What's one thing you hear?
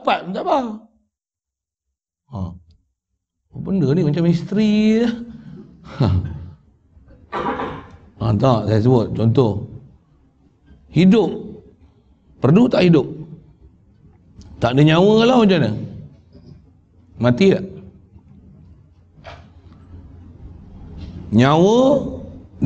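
An elderly man speaks with animation into a microphone, in phrases broken by pauses.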